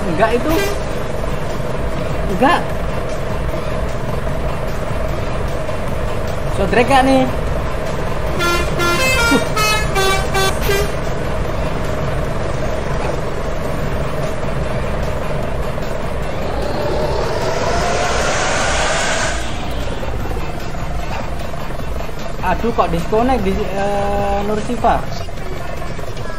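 A bus engine idles with a steady low rumble.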